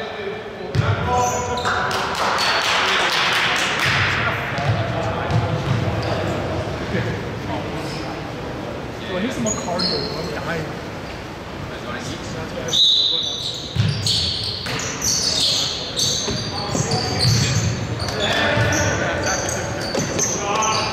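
Sneakers squeak sharply on a hardwood floor in a large echoing gym.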